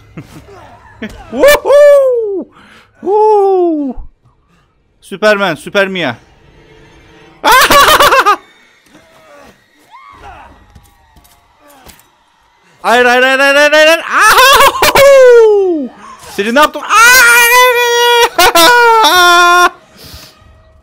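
A young man talks and shouts with animation close to a microphone.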